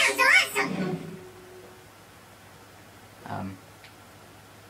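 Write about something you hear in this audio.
Video game sound effects play from a television.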